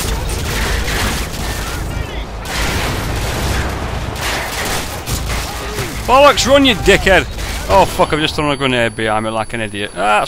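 Gunfire rattles nearby in rapid bursts.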